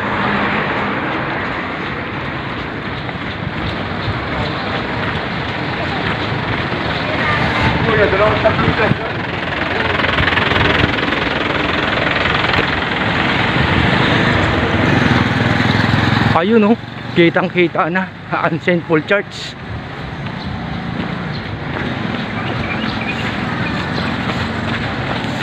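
Wind rushes loudly past while riding along a road.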